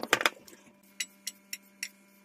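Pepper pieces drop into a pan with soft taps.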